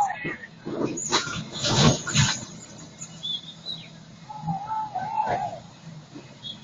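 A heavy truck tips over and crashes into water with a loud splash.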